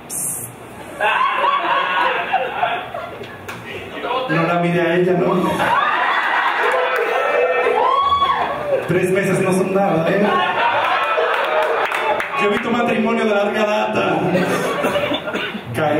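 A man speaks with animation into a microphone over loudspeakers.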